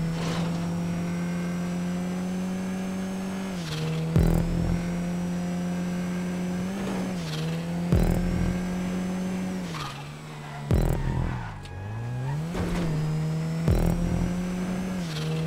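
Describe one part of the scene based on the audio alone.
A car engine revs steadily, shifting gears up and down.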